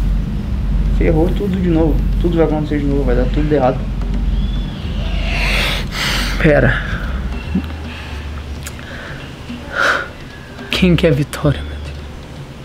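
A young man speaks close by, sighing and groaning with frustration.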